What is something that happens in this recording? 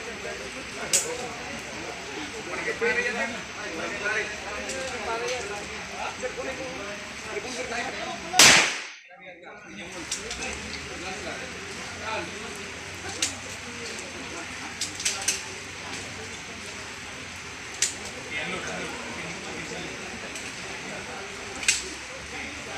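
Pistol shots crack one at a time outdoors, spaced irregularly.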